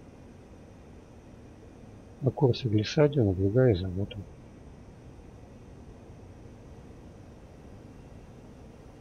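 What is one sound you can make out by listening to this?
A twin-engine jet fighter's engines drone, heard from the cockpit.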